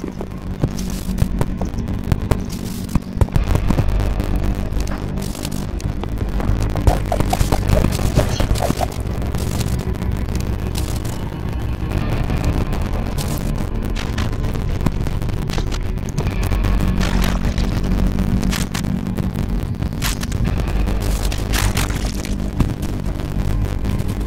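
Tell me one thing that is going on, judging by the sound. Soft electronic game music plays steadily.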